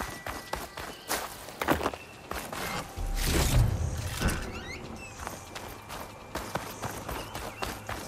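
Footsteps crunch on gravel as a figure runs.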